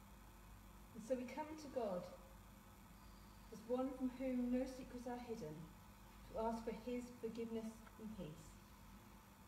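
A woman speaks calmly and slowly, reading out in a reverberant hall.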